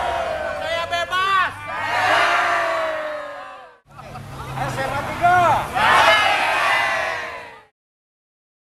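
A large crowd of men and women cheers and shouts together outdoors.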